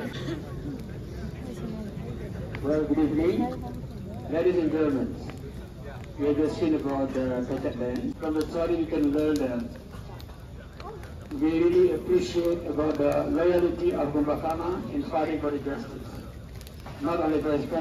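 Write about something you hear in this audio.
A bonfire crackles and roars.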